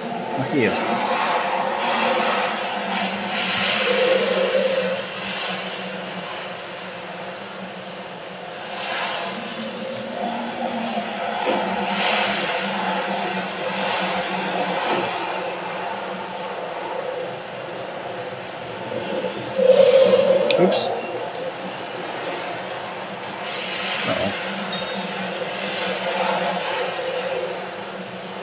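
Wind howls steadily.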